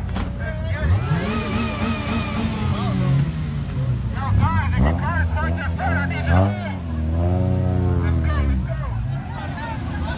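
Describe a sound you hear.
A car engine revs loudly, rising and falling.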